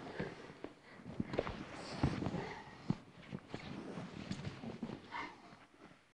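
Bodies thud and shuffle on a padded mat.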